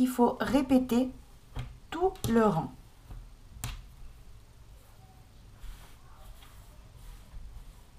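Soft yarn fabric rustles as hands spread and smooth it.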